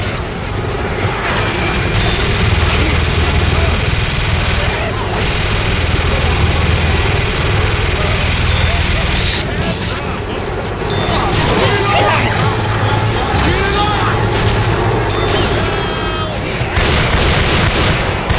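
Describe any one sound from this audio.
Zombies snarl and screech.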